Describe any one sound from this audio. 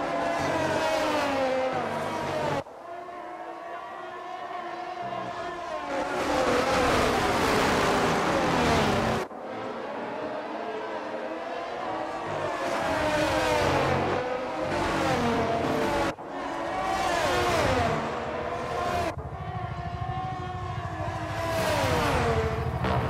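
Racing car engines scream at high revs, rising and falling as the cars shift gears.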